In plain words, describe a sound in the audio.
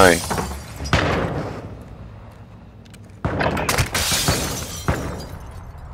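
A revolver fires loud, sharp shots a few times.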